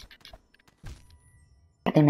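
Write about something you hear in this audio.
A blade slashes swiftly through the air.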